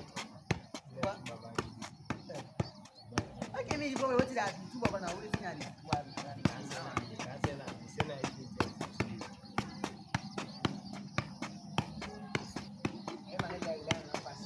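A football thumps against a foot as it is kicked up again and again.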